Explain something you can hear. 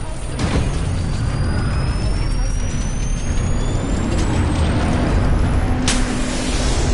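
A healing device charges with a rising electric whine.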